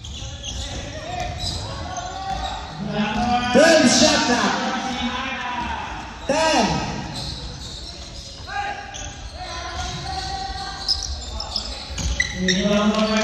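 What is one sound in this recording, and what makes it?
Young men call out to each other across the court.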